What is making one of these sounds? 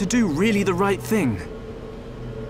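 A young man asks a question in an uncertain voice.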